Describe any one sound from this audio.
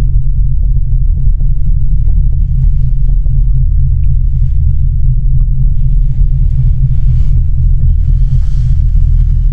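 Wind buffets the microphone in a steady low rumble.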